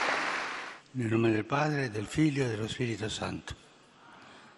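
An elderly man speaks slowly and calmly through a microphone in a large echoing hall.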